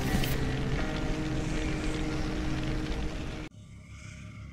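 Loud game sounds and music rumble and crash.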